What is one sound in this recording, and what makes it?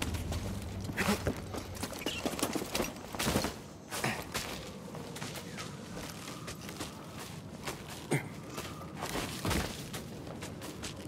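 Hands grab and scrape against stone while climbing.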